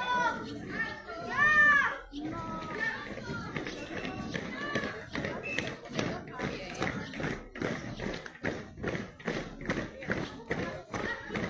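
Many footsteps march in step on a paved street.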